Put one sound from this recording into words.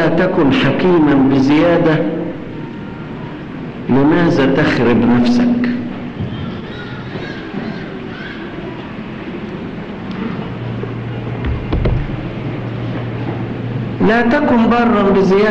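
An elderly man speaks slowly and emphatically into a microphone, with pauses between phrases.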